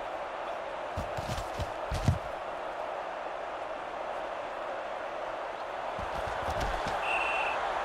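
Padded players collide with dull thuds.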